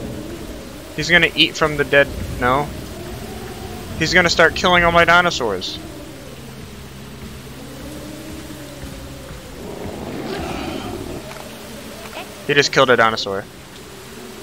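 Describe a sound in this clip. A large creature roars loudly.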